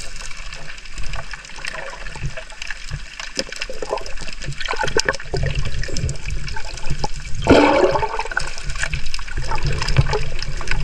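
Water gurgles and rumbles underwater as a diver kicks with fins.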